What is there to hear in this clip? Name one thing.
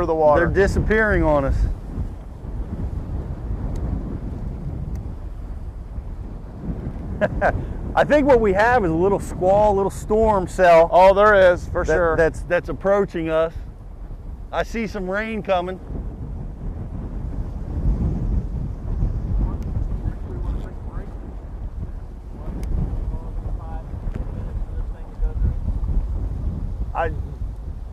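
Strong wind rumbles and buffets outdoors.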